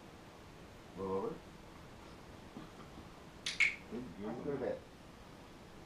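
A man speaks briefly to a dog nearby.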